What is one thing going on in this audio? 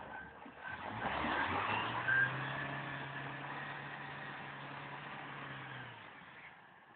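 An engine runs steadily as a vehicle strains in mud.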